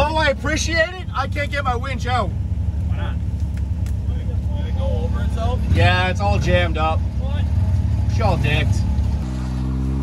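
A man talks loudly and excitedly nearby.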